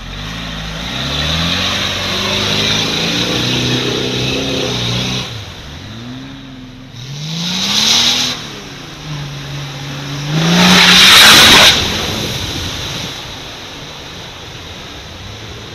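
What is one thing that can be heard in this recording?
Mud splashes and sprays from spinning tyres.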